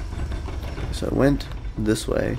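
A giant creature roars loudly.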